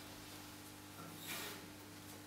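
An acoustic guitar string is plucked softly.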